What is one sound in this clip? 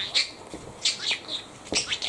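A mop swishes across a hard floor.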